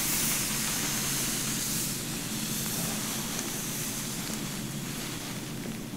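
A comb scrapes softly through hair.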